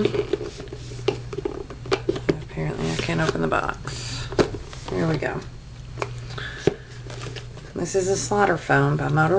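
A woman talks casually and close up.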